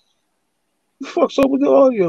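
A man speaks with animation into a microphone over an online call.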